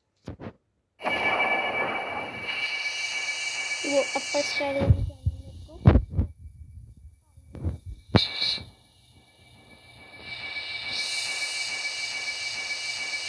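A loud game energy blast roars and crackles.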